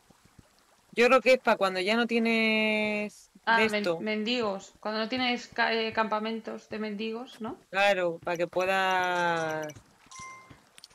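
A young woman sings loudly through a microphone.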